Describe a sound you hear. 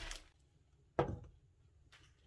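A glass lid clinks onto a frying pan.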